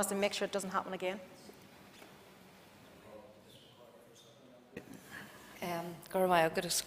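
A woman speaks firmly into a microphone.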